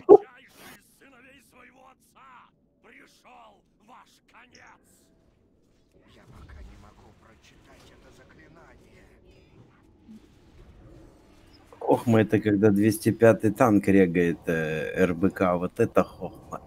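Magic spells crackle and hum during a fight.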